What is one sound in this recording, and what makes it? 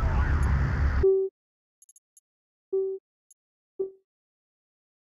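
Short electronic menu beeps sound a few times.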